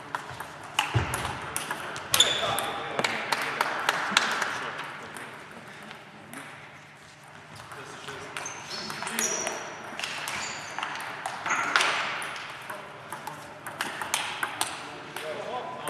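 A table tennis ball clicks quickly back and forth between paddles and the table.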